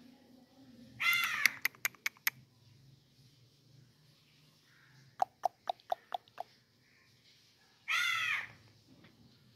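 A parrot screeches loudly in short, harsh bursts close by.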